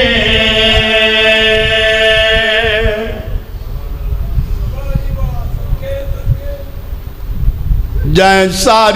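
A man sings a long, held lament loudly through a microphone, with a strong echo.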